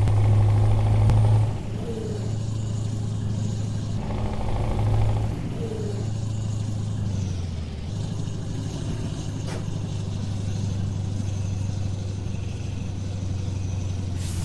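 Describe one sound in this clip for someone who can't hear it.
A truck engine hums steadily at low speed.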